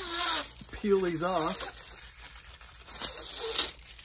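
Plastic film crinkles and rustles under a hand.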